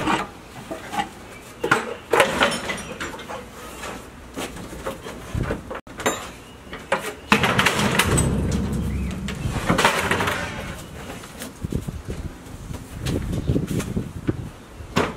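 Wooden boards knock and clatter as they are handled close by.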